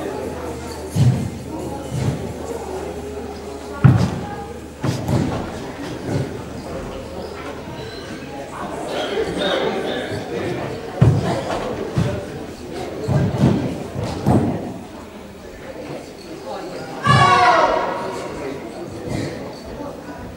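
A young man's bare feet thump and slap on a wooden floor in a large echoing hall.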